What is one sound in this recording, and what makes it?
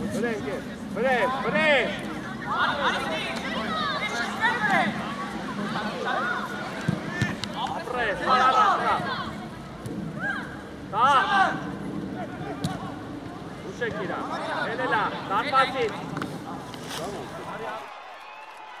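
Children shout and call out across an open outdoor field.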